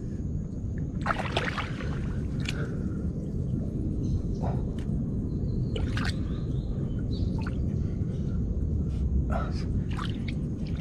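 Small creatures plop and click in shallow muddy water nearby.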